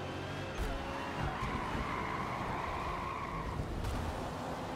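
Tyres screech as a racing car slides off the track.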